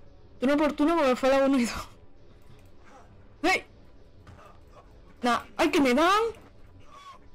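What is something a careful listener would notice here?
A young woman shrieks and squeals excitedly, close to a microphone.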